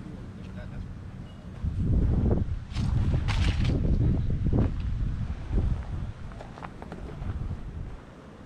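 Footsteps crunch on dry leaves and gravel outdoors.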